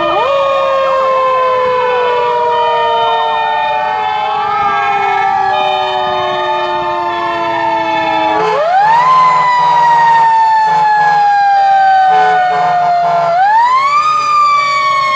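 A fire truck engine rumbles as it drives along.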